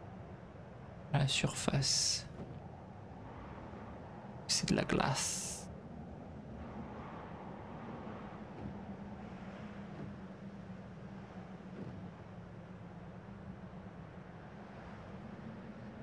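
Wind blows steadily through a snowstorm.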